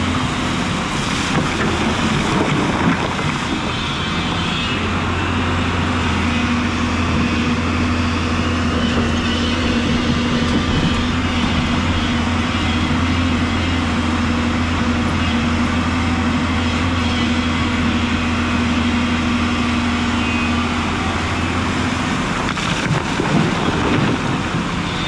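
Rocks clatter and splash as an excavator bucket scoops them from the water.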